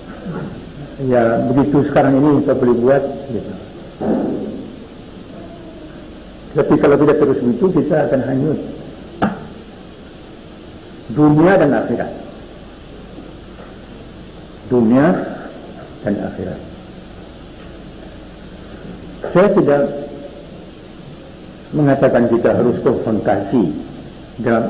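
An elderly man speaks slowly into a microphone, in short bursts with pauses, heard through a loudspeaker in an echoing room.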